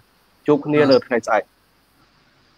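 A man speaks briefly and cheerfully over an online call.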